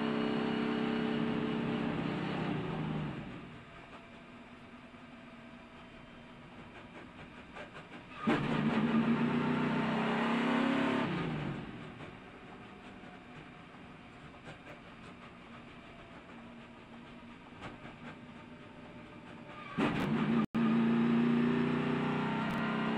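A race car engine roars loudly up close, rising and falling in waves.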